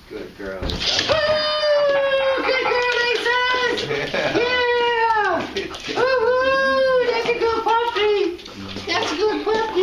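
A dog whines loudly in long, high wavering cries.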